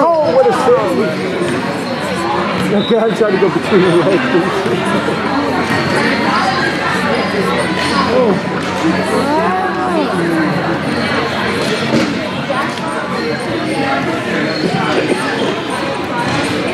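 Hockey sticks click against a ball.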